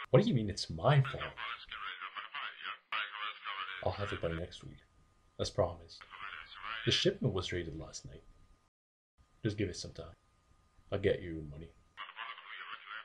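A young man talks on a phone close by, upset and pleading.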